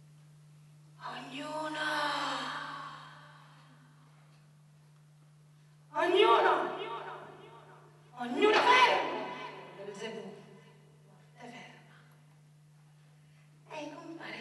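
A woman declaims loudly from a stage, her voice echoing in a hall.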